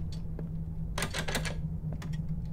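A locked door handle rattles.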